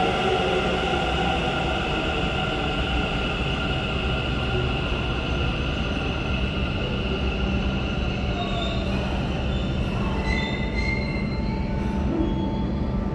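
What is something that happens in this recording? A train rolls out along the rails with a low rumble and screeching wheels.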